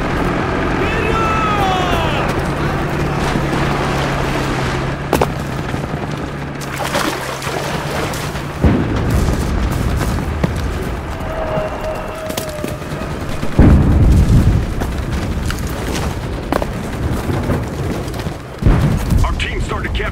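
Footsteps crunch over rough ground.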